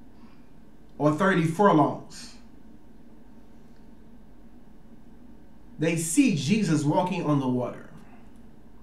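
A man speaks calmly and close by, reading out in short phrases.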